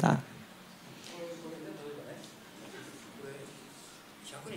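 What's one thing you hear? An elderly man speaks quietly, farther off without a microphone.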